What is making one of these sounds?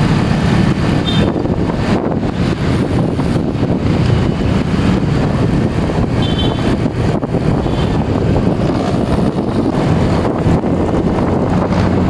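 Wind rushes past loudly while riding.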